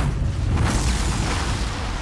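A dragon breathes fire with a loud roar.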